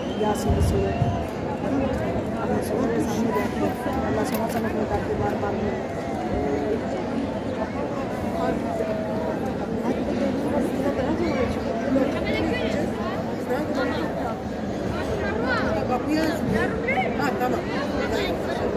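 A crowd of women murmurs and chatters all around.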